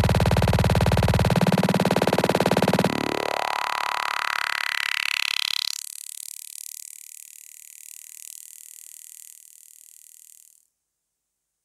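Electronic dance music plays loudly with a fast pulsing beat, then sweeps and filters away into silence.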